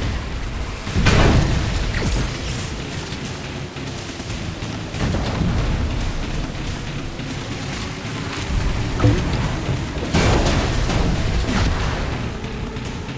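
Water splashes and sprays under a speedboat.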